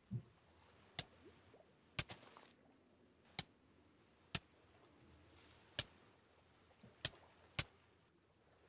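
Explosions boom one after another underwater.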